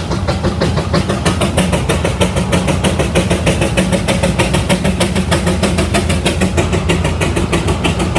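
A steam traction engine chugs with a fast, steady beat close by.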